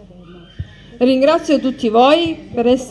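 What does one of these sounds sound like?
A woman speaks loudly and with animation close by.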